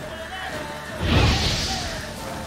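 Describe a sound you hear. A fiery blast bursts with a loud whoosh.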